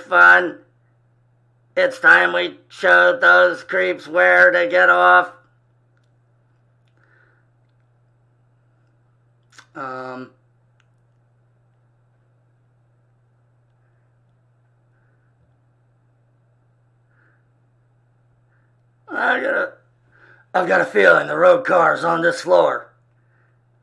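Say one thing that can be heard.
An elderly man speaks calmly over an online call, pausing between phrases.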